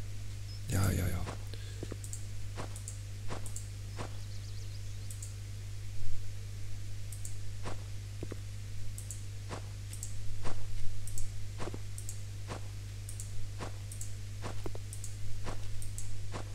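Soft clicks sound as pieces of rubbish are picked up.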